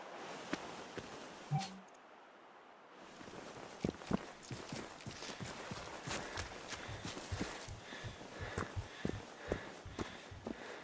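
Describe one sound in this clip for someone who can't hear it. Footsteps crunch quickly through dry grass and brush.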